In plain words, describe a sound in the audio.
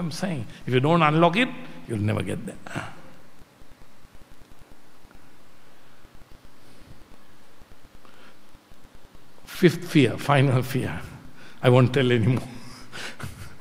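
An elderly man speaks with animation into a microphone, heard through a loudspeaker with pauses.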